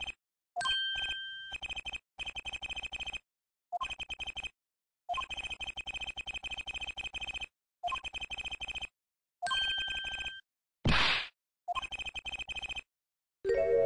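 Rapid high electronic blips tick in quick bursts as text prints out.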